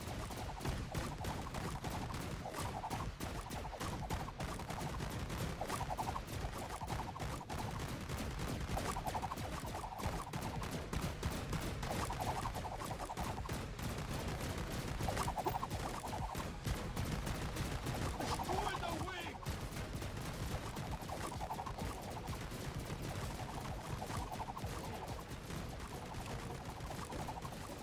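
Toy guns fire in rapid bursts of small pops.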